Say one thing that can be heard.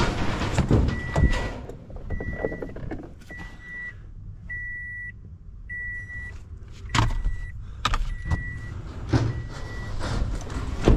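A car's door-open chime beeps repeatedly at a steady pace.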